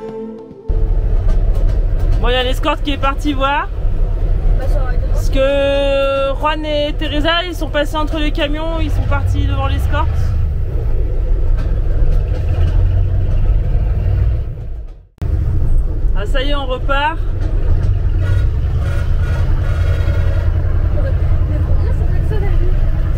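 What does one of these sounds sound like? A vehicle engine rumbles steadily from inside the cab.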